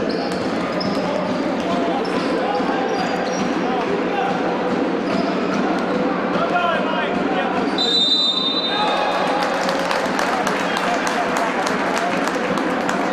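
A crowd murmurs and cheers throughout a large echoing hall.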